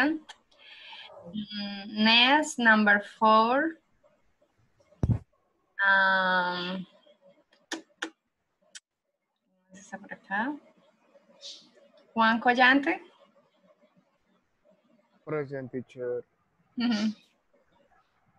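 A woman speaks clearly and calmly into a microphone, in short phrases with pauses.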